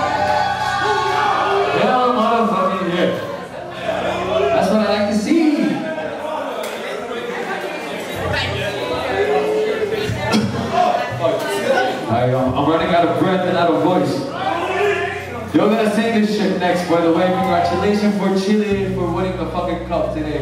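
A young man sings and shouts through a microphone.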